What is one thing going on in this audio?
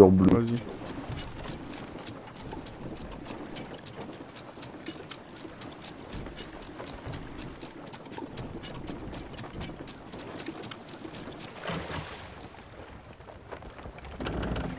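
A ship's wheel clicks steadily as it turns.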